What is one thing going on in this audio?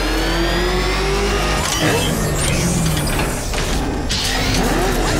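A powerful engine roars and revs as a vehicle speeds along.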